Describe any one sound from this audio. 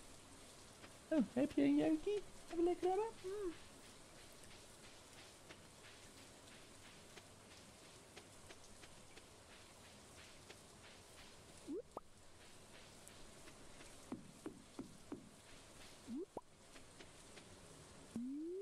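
Light rain patters steadily.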